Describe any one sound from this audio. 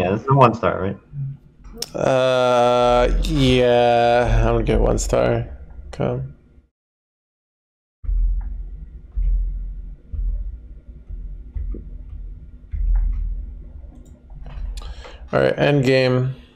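A man talks close to a microphone, with animation.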